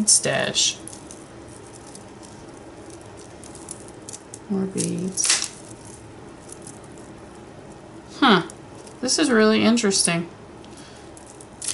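Beads and metal jewellery clink and rattle as hands sift through a pile.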